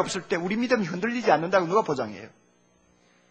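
A middle-aged man speaks forcefully into a microphone.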